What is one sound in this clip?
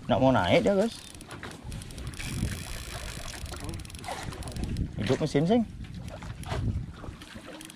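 Water laps against a small boat.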